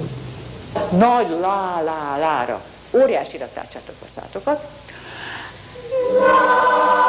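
A woman sings with animation.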